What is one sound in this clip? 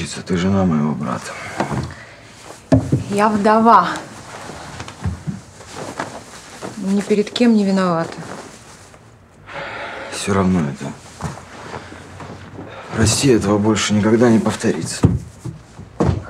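A man speaks in a low, weary voice.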